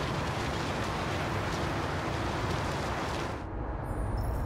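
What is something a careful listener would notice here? A vehicle drives through snow with wind rushing.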